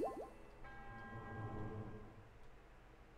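A bright shimmering chime rings out and fades.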